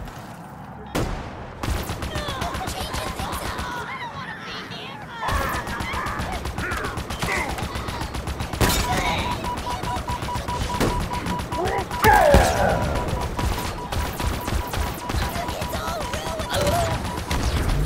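Gunfire and explosions crackle in quick bursts.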